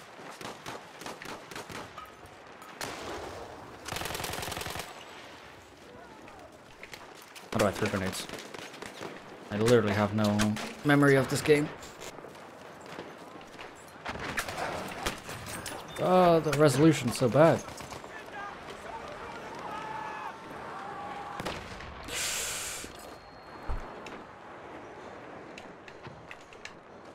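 Rifle shots crack again and again.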